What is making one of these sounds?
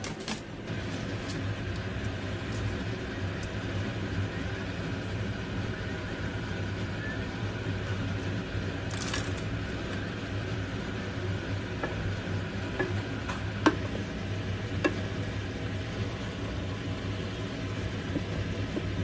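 Liquid simmers and bubbles steadily in a pan.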